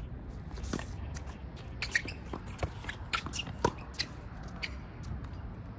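A tennis ball is struck with a racket with sharp pops.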